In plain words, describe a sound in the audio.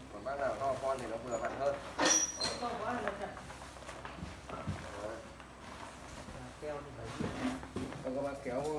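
Stiff plastic rustles and crinkles as a suit is pulled on.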